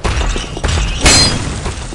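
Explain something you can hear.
A heavy blow strikes with a sharp crash.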